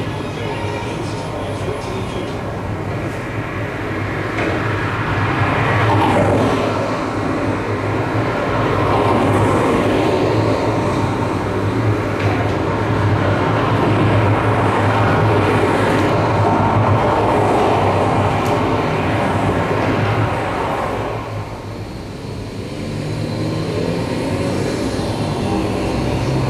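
Electronic music plays loudly through loudspeakers.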